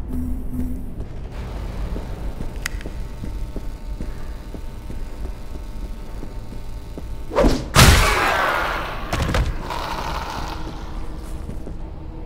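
Footsteps thud steadily along an echoing corridor.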